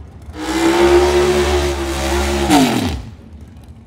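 Tyres screech as they spin on the track.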